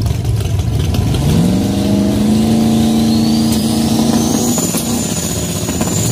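A race car engine revs up and holds a loud drone.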